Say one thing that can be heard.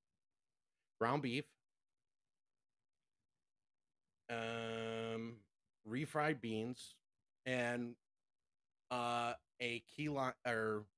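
A man speaks in a drawn-out, theatrical voice close to a microphone.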